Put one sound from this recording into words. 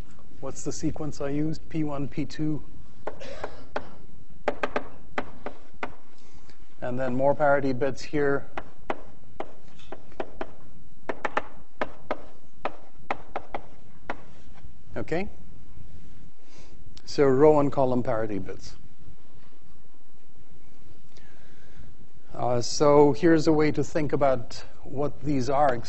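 A man lectures through a microphone in a large echoing hall, speaking calmly with pauses.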